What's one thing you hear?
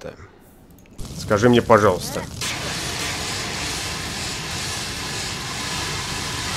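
A stove fire crackles and roars.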